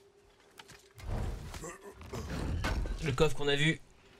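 A heavy chest lid scrapes and thuds open.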